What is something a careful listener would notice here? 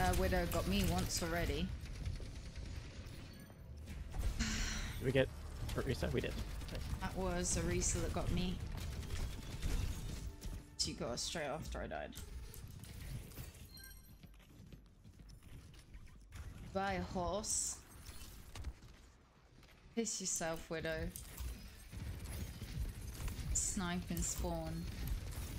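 A young woman talks with animation into a nearby microphone.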